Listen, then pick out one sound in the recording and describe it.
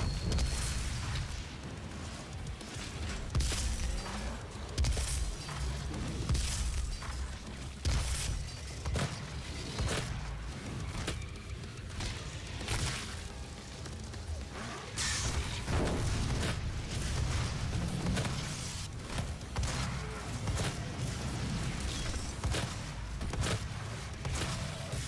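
Guns fire in rapid bursts with loud blasts.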